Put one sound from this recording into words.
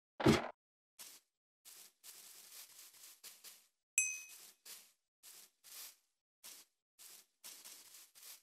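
Footsteps rustle softly on grass.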